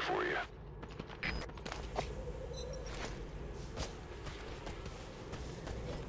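Hooves clatter as a horse gallops over rocky ground.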